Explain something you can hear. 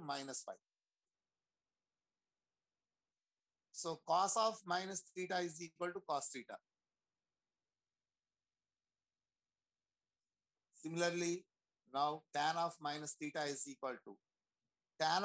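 A man explains calmly in pauses over an online call.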